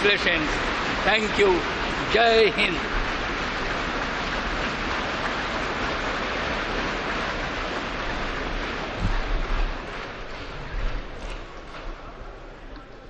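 A large crowd applauds in an echoing hall.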